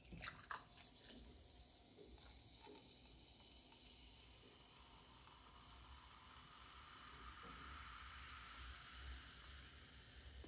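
Soda pours into a glass, fizzing and crackling steadily louder.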